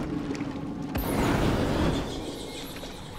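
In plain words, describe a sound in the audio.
A flamethrower roars out a burst of fire.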